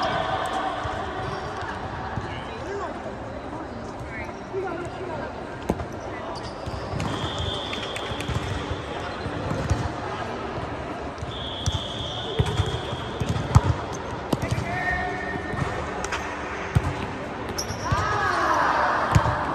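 Young women call out to each other during play.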